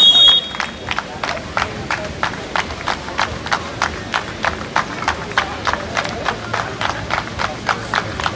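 A crowd of spectators claps in a steady rhythm, outdoors.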